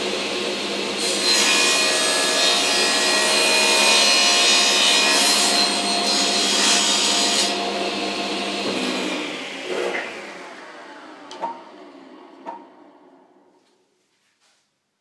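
A table saw runs with a loud whine and slowly winds down.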